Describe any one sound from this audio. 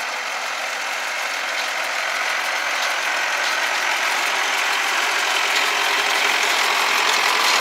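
A tractor engine rumbles steadily and grows louder as it comes closer.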